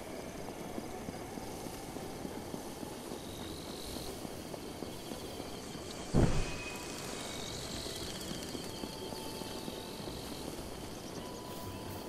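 Footsteps patter steadily over stone and grass outdoors.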